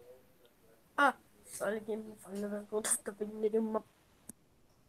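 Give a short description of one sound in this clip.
A young child speaks over an online call.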